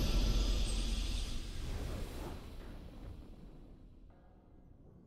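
A triumphant game fanfare rings out and fades away.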